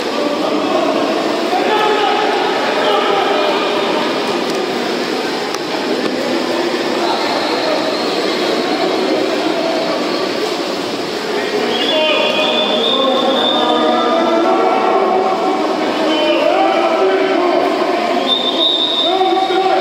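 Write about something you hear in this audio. Water splashes as swimmers thrash and churn in a pool.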